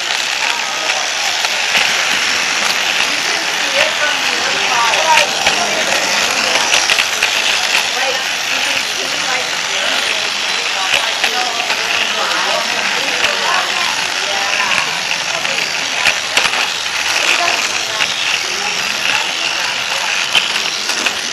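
A toy train's motor whirs steadily as it runs along plastic track.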